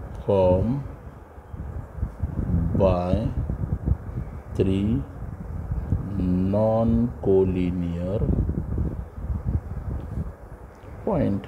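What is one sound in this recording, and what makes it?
A pen scratches on paper as someone writes.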